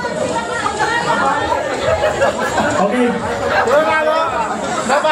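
A crowd of men and women chatters and laughs loudly in a room.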